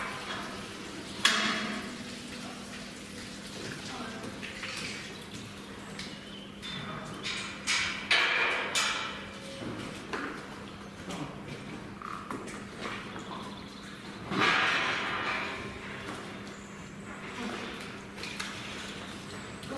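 A cow's hooves clop on a hard floor in an echoing shed.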